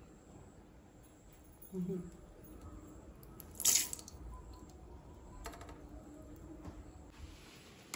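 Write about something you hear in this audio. Liquid pours from a carton into a bowl.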